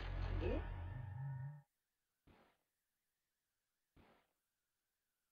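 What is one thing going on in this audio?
Video game sound effects play in short bursts.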